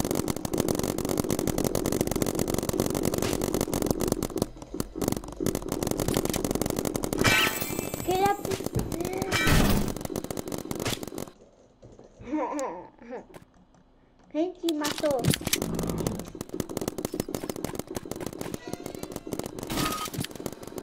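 Rapid gunfire crackles from a game.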